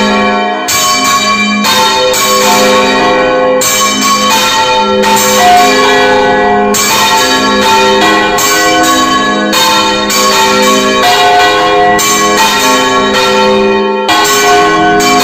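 A large bell rings loudly close by, struck over and over.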